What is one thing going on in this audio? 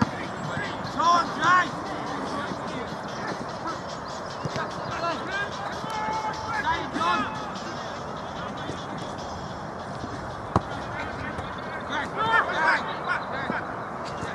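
Men shout to each other across an open pitch outdoors.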